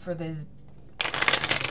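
Playing cards are shuffled with a quick, crisp riffle.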